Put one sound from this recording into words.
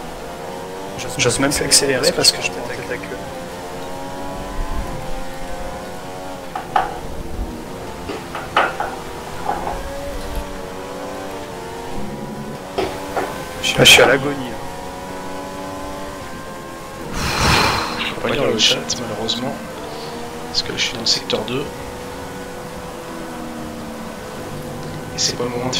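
A racing car engine whines loudly, rising and dropping in pitch as it shifts gears.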